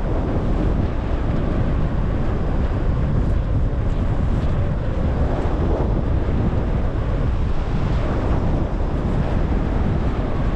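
Strong wind rushes and buffets steadily past a microphone high in the air.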